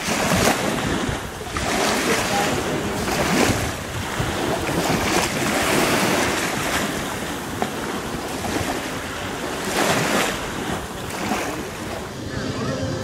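Small waves lap gently at the shore.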